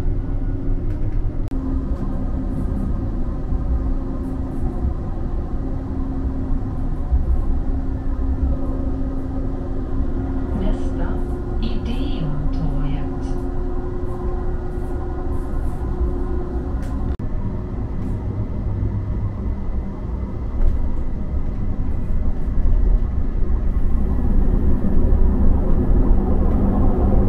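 A tram rumbles and hums steadily as it rolls along.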